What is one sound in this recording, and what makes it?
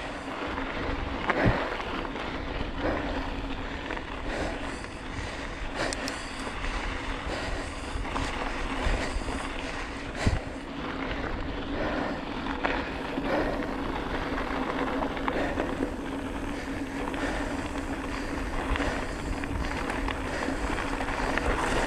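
Bicycle tyres crunch over a gravel dirt track.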